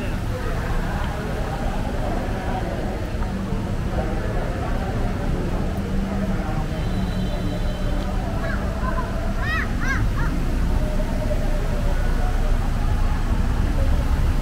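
A crowd of people chatters and murmurs nearby in a large echoing space.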